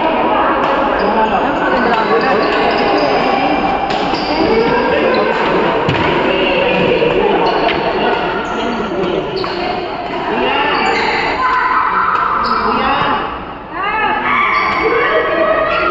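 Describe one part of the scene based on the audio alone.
Many men and women chatter loudly in a large echoing hall.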